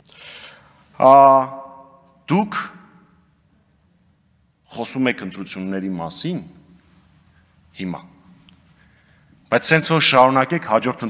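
A man speaks in short bursts through a microphone in an echoing hall.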